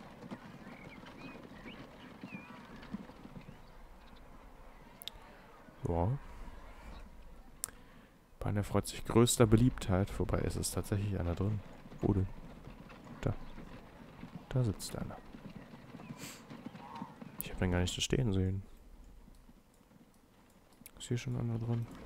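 Horse hooves clop on cobblestones.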